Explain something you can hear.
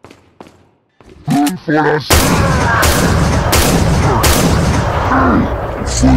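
Gunshots fire one after another.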